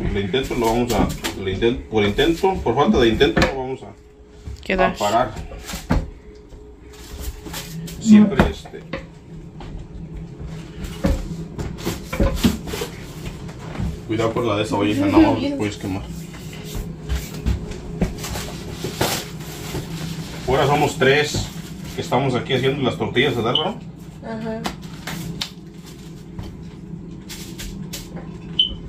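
A tortilla press thumps shut.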